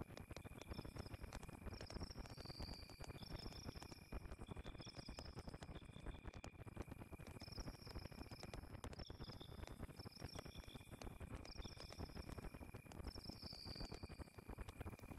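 A campfire crackles and pops steadily.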